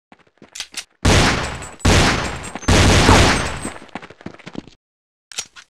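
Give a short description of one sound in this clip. Loud explosions boom and roar close by.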